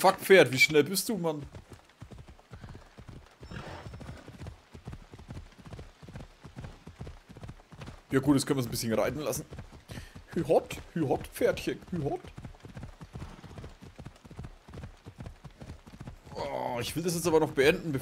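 Horse hooves thud rhythmically on a dirt path at a gallop.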